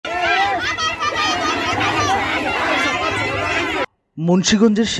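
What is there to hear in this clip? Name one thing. A crowd of women chants along.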